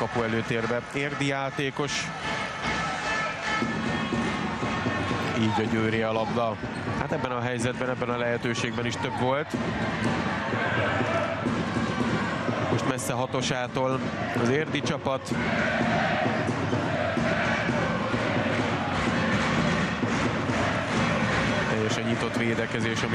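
A large crowd cheers and chants, echoing in a big indoor hall.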